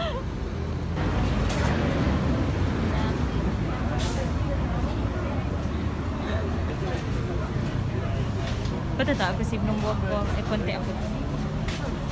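A crowd chatters in a busy, noisy room.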